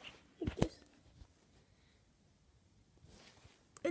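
Small plastic toy pieces click together in a hand.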